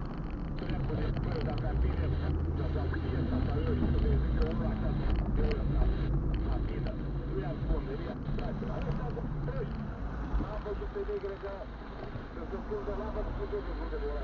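A car engine hums with a low, steady rumble while driving.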